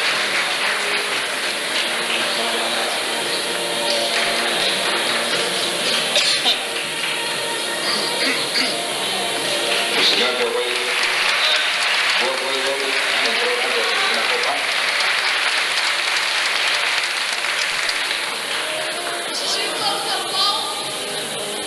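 A man speaks through a loudspeaker, echoing in a large hall.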